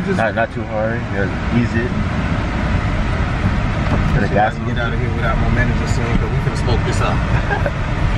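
A gear lever clicks into place.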